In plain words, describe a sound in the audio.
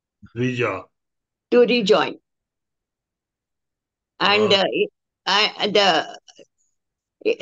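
A man speaks calmly and close to a microphone, reading out in short phrases.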